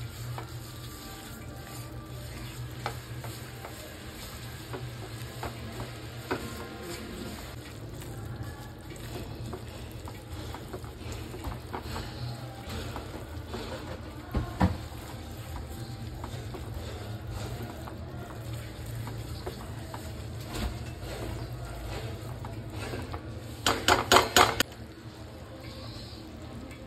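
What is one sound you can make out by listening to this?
A sugar mixture sizzles and bubbles in a pan.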